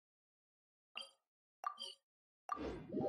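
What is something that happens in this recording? A soft interface chime sounds a few times.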